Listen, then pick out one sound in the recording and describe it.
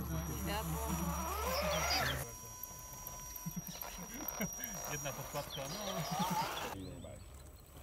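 A small electric motor whines, rising and falling in pitch.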